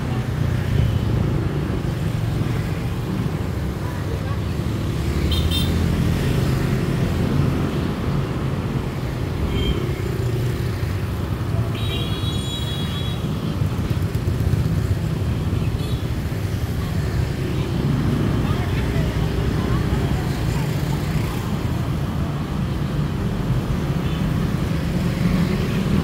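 Motorbikes and scooters ride past on a busy street.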